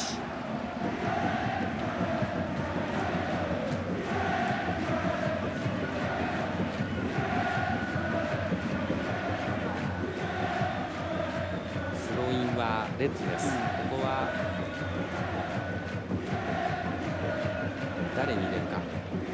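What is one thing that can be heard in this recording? A stadium crowd sings and chants in a steady rhythm.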